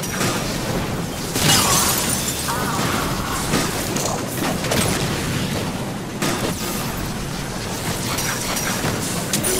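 Energy beams fire and crackle in bursts.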